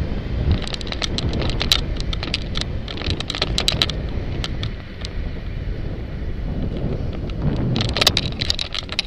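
A loose mount rattles and clicks sharply over bumps in the road.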